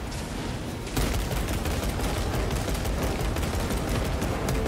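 A heavy rifle fires rapid bursts.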